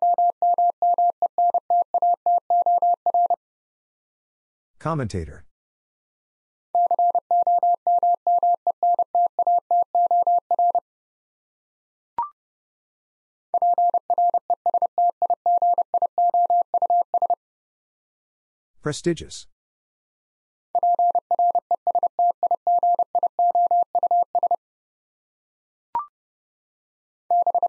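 Morse code beeps out in quick, even tones from a telegraph key.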